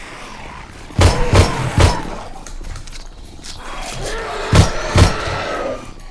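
Gunshots ring out sharply, several in quick bursts.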